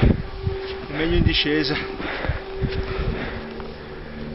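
Footsteps crunch in deep snow.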